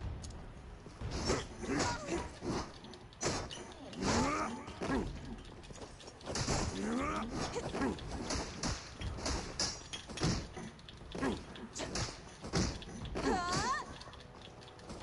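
Blows and slashes land in a fight, with sharp impact hits.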